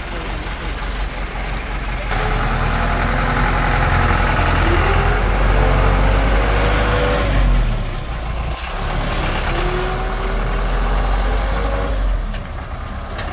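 Tyres crunch on a rough dirt road.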